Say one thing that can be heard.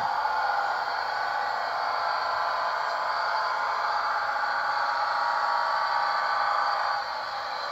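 A model train rolls along its track with a steady whirring rumble.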